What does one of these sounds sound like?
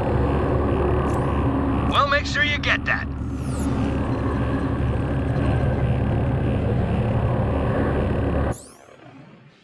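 A low droning hum with rumbling game sounds plays steadily.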